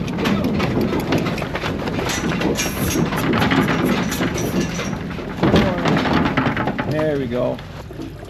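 Cow hooves shuffle and clatter on a hard floor.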